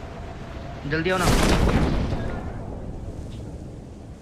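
A parachute opens with a rushing whoosh.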